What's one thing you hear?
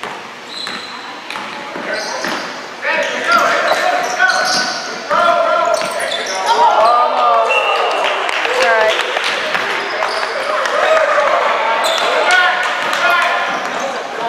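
Shoes squeak sharply on a gym floor.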